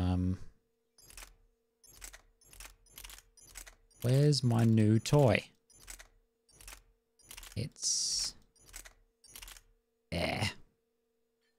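A game menu clicks sharply each time an option changes.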